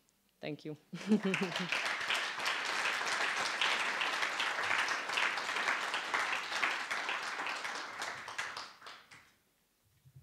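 An audience applauds steadily, then the applause fades.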